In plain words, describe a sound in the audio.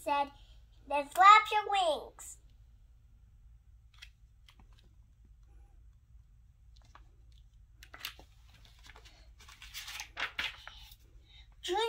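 A young girl reads aloud close by, with lively expression.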